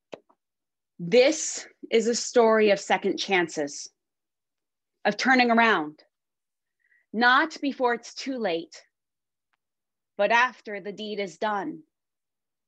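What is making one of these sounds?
A woman speaks calmly and earnestly over an online call.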